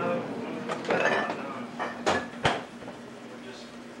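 A freezer door thumps shut.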